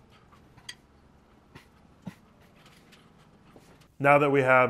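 A wrench ratchets and clicks against metal.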